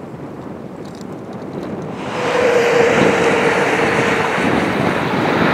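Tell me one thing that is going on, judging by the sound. A diesel train engine rumbles as it approaches, growing louder.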